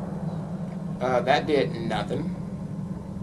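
A man speaks casually into a microphone.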